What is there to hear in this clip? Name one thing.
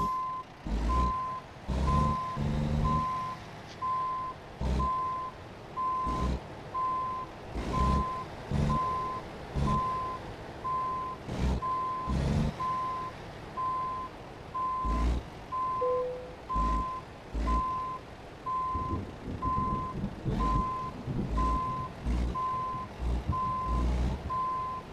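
A truck engine rumbles at low idle.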